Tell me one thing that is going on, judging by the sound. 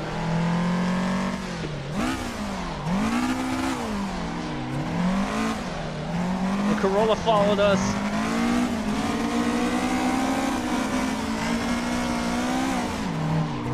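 A racing car engine roars, revving up and down through the gears.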